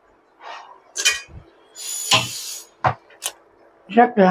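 A wooden spoon stirs and knocks against a metal pot.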